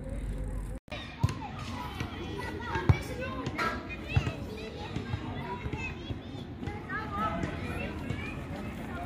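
Young children call out in the distance outdoors.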